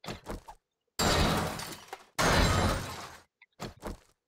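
A blade strikes a metal door with heavy thuds.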